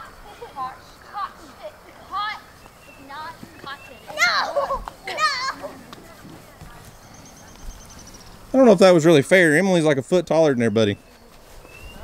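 Children shout and call out while playing outdoors.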